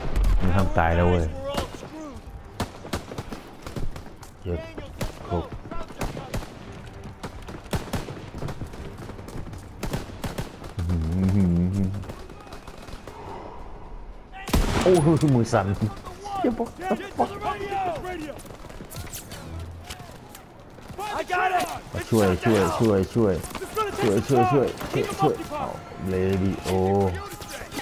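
Gunshots crack repeatedly in the distance.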